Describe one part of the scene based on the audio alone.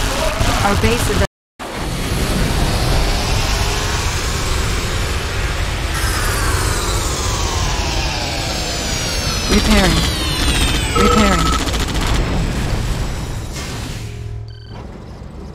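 Explosions boom and rumble in a game battle.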